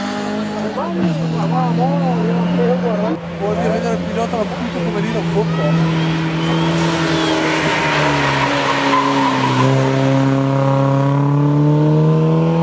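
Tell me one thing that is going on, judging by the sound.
A third historic rally car revs hard through a hairpin and pulls away.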